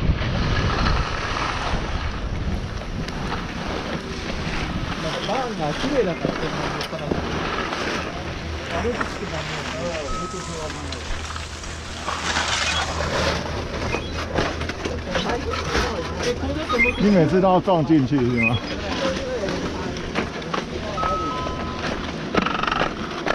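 Skis scrape and slide over packed snow.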